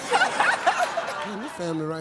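A woman laughs loudly.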